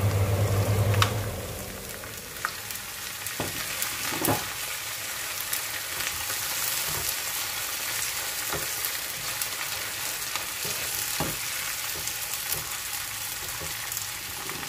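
A plastic spatula scrapes and knocks against a frying pan while stirring.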